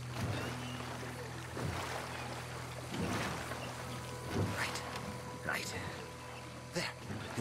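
Oars splash rhythmically in water as a boat is rowed.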